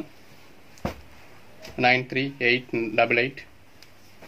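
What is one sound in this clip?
Cloth rustles softly as hands handle it.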